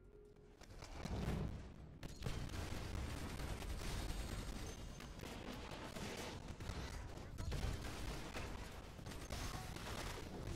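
Explosions boom and crackle in quick succession.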